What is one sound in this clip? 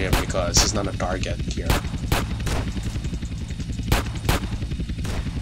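Pistol shots ring out one after another.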